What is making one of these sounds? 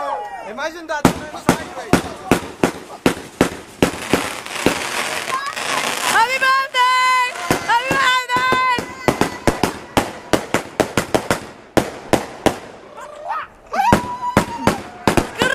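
Fireworks pop and crackle rapidly overhead.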